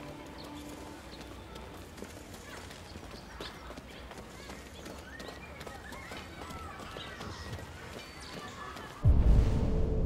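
Footsteps tread steadily along a paved path.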